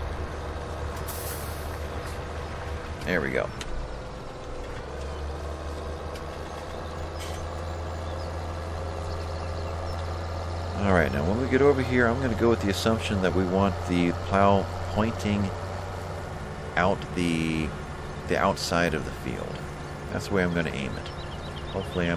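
A tractor engine hums steadily as the tractor drives along.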